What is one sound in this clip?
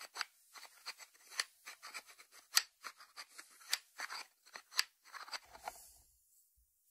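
Fingertips tap on a ceramic lid.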